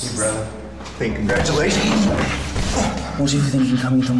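Two men scuffle with thumps and grunts.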